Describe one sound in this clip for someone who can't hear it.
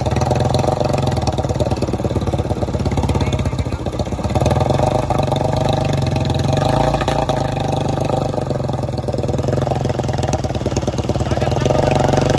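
Water splashes and swishes around a motorcycle's wheels as it wades through shallow water.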